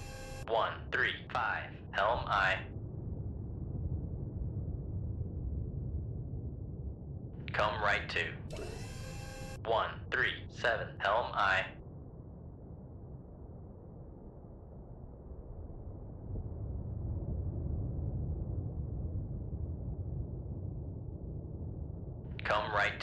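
A submarine's engine rumbles low and steady underwater.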